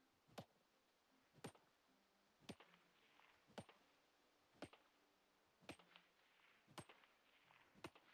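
A heavy hammer strikes rock in steady, evenly spaced blows.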